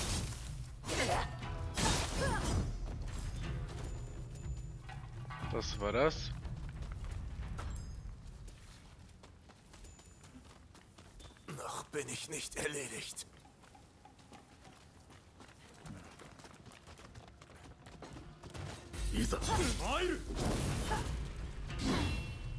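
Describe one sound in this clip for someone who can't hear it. Swords clash with sharp metallic rings.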